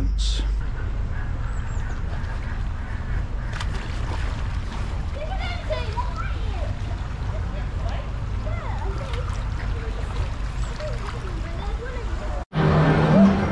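Water splashes as a sea lion swims.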